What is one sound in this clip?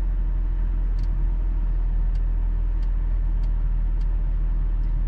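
A car engine hums low and steady, with road rumble heard from inside the car.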